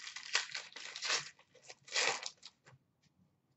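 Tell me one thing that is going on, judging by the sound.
A plastic wrapper crinkles and tears.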